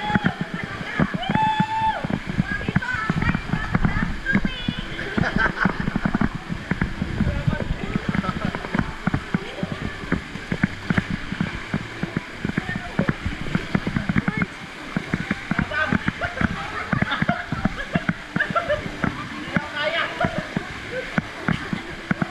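Young women laugh and shout excitedly nearby.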